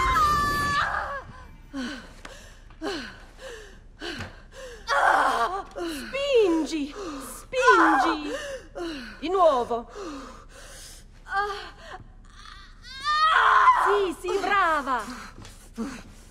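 A young woman screams and groans in pain.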